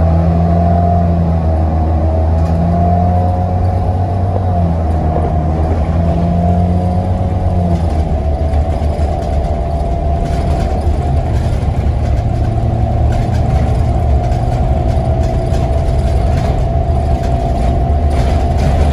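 A bus engine hums and drones steadily from inside.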